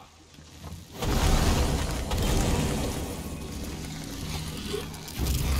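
A magic spell crackles and hisses loudly.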